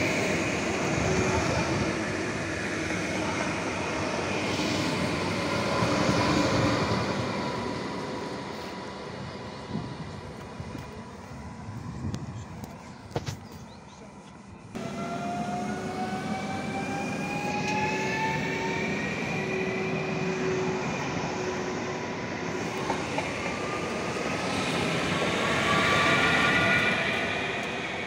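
A passenger train rumbles loudly past on the rails, close by.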